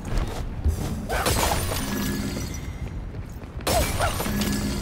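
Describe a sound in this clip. Small chimes tinkle as red orbs are gathered.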